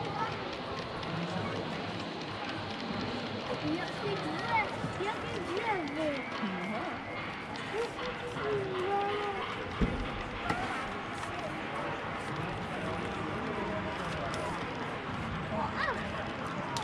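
A model train rolls along its track with a soft rumble.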